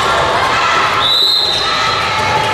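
A referee's whistle blows once, sharply.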